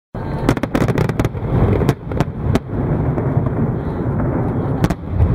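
Fireworks burst and crackle loudly overhead.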